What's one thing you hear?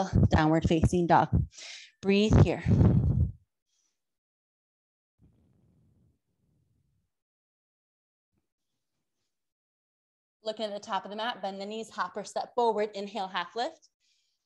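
A woman speaks calmly and slowly close to a microphone, with pauses.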